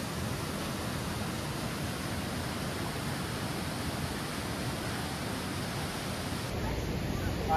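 A waterfall roars and splashes steadily close by.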